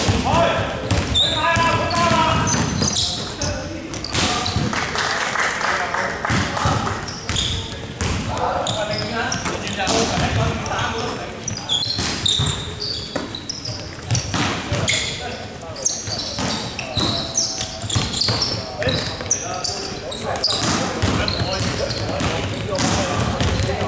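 A basketball bounces on a wooden floor, echoing in a large hall.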